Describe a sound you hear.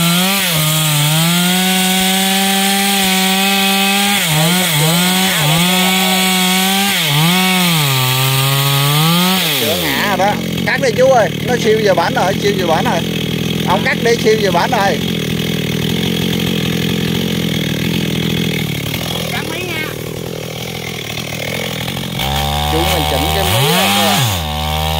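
A chainsaw engine revs up and down close by.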